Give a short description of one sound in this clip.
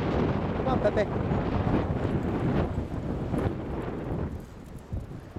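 Wind buffets outdoors.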